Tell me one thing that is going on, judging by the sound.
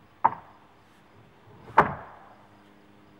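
Stone blocks knock and scrape against each other.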